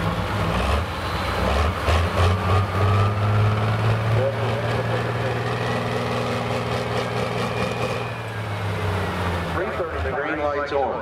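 A big tractor engine idles with a deep, loud rumble.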